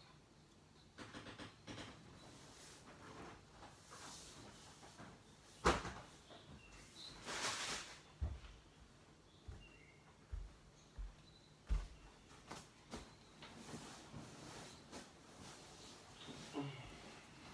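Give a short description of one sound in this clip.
A child knocks and bumps toys on a tiled floor.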